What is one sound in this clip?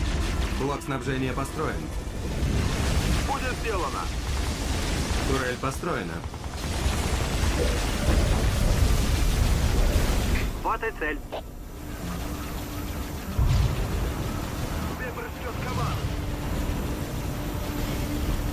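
Laser weapons fire with humming zaps.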